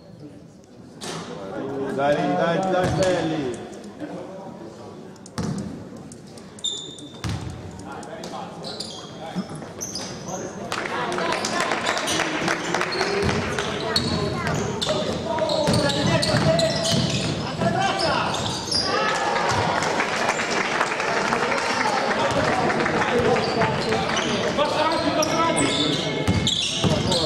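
A crowd of spectators shouts and calls out in an echoing gym.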